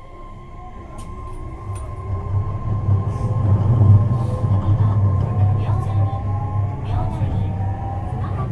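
An electric train's motor hums and whines, rising in pitch as the train speeds up.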